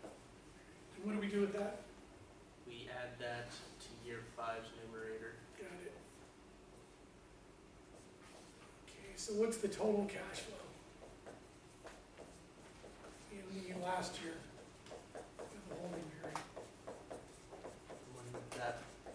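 A middle-aged man speaks calmly and explains at a moderate distance.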